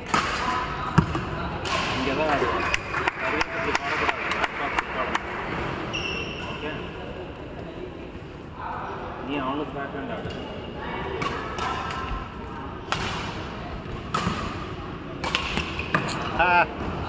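A shuttlecock is struck sharply with a racket, echoing in a large hall.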